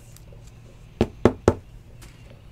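Trading cards rustle and click as they are flipped by hand.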